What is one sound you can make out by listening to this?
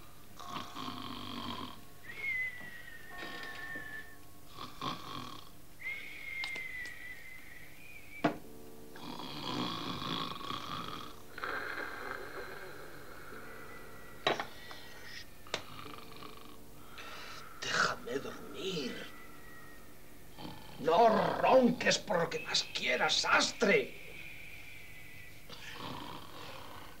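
A man speaks quietly and slowly up close.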